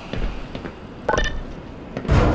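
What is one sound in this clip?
A button beeps once.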